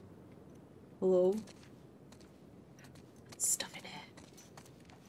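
A young woman speaks briefly and quietly, close to a microphone.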